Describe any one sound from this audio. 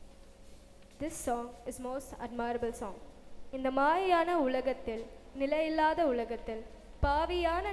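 A young woman sings solo through a microphone, echoing in a large hall.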